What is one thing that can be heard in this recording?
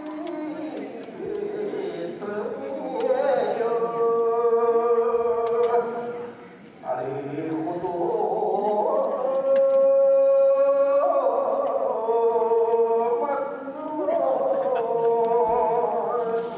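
A child sings long, drawn-out notes through a loudspeaker.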